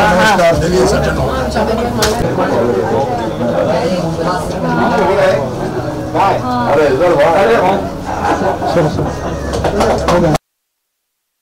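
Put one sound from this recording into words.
A group of men and women chatter and laugh nearby.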